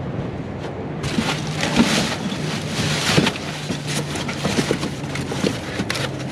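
Cardboard boxes scrape and rustle inside a metal dumpster.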